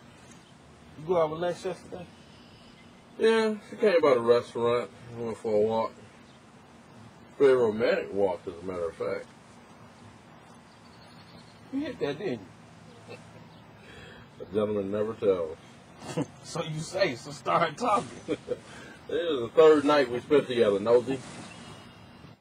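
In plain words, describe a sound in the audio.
A man speaks casually, close by.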